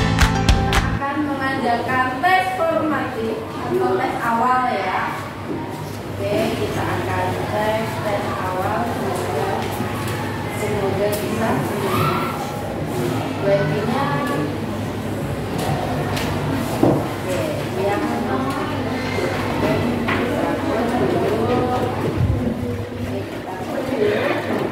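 Children chatter quietly in a room.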